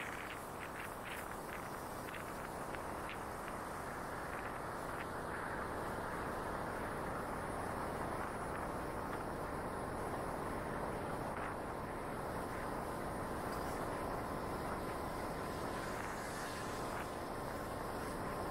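Wind rushes past close by.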